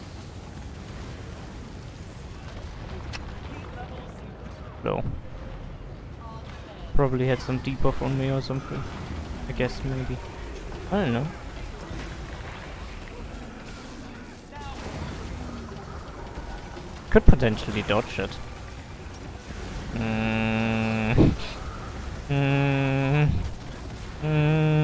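Game spells whoosh and crackle with bursts of fire.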